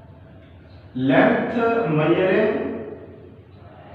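A man speaks loudly and clearly nearby.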